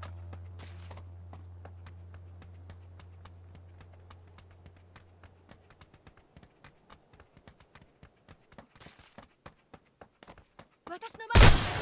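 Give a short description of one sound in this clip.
Footsteps patter quickly and steadily on a hard floor.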